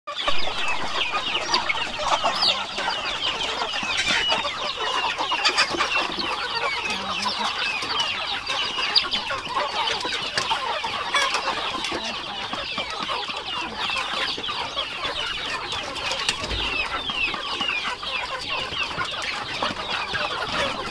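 Many chickens cluck and chirp busily close by.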